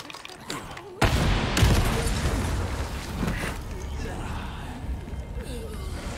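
A large explosion booms and rumbles away.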